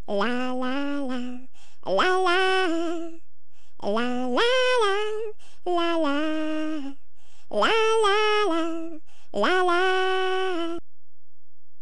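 A girl sings a cheerful tune in a high voice.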